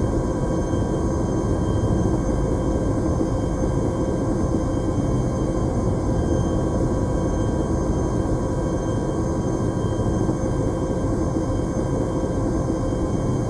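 A vehicle rumbles and hums steadily while moving.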